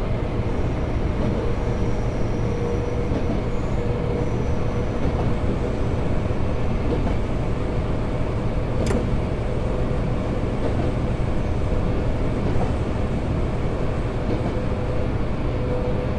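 A motor whines steadily inside a train cab.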